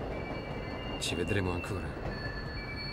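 A second man answers in a calm voice nearby.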